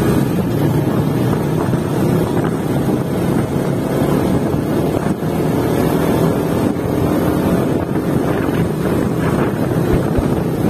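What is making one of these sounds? Wind rumbles heavily over a microphone outdoors.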